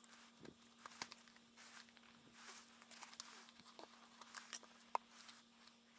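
A clamp clicks and knocks against a book.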